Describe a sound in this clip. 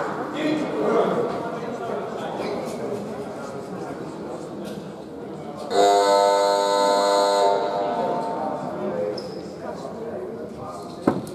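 Players talk and call out together in a large echoing hall.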